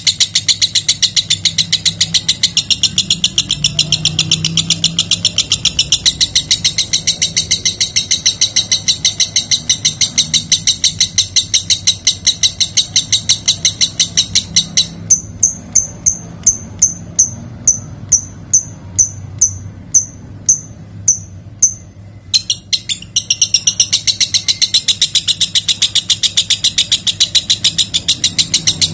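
A lovebird sings a fast, high, chattering trill that pauses for a few seconds and then returns.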